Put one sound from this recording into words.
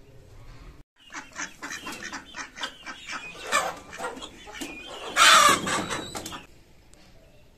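Chickens cluck and squawk.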